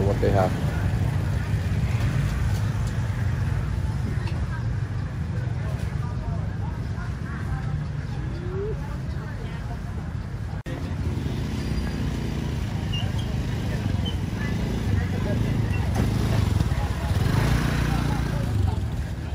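Many people chatter in a busy outdoor market.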